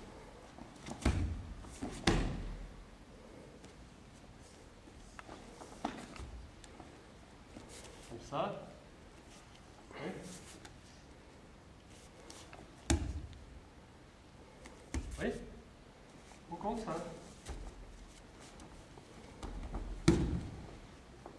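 Bodies thud heavily onto a padded mat.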